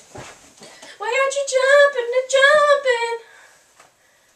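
A teenage girl sings out loudly close by.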